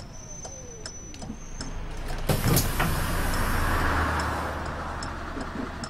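A bus engine hums at low pitch and grows louder.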